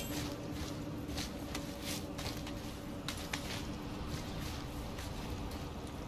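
Hands grip and scrape on a stone wall while climbing.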